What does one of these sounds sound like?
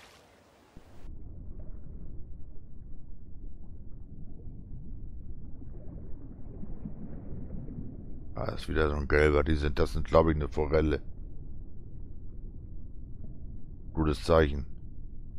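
Water murmurs in a low, steady rush, as if heard from underwater.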